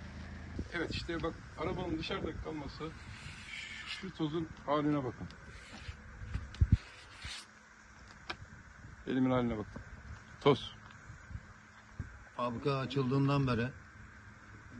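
An older man speaks with animation close to a microphone.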